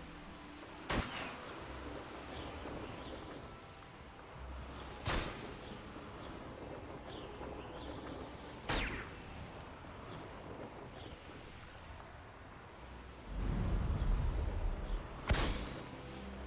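A balloon pops with a sharp, sparkling burst.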